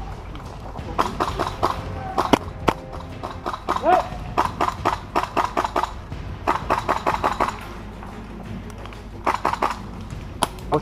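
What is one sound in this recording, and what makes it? Airsoft guns fire in rapid bursts of sharp clicks.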